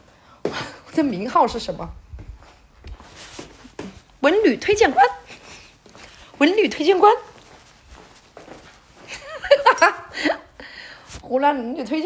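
A young woman talks animatedly into a phone microphone close up, in short bursts.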